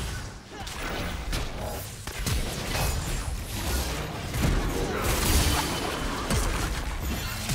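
Magic blasts and strikes burst and clash in a fast fight.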